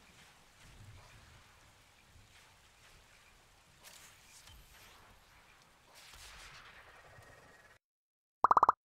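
Wind gusts softly outdoors.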